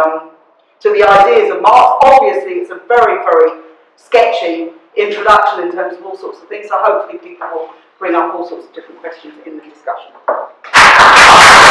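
A woman speaks calmly to a room, with short pauses.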